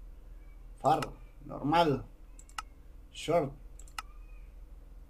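A menu button clicks several times.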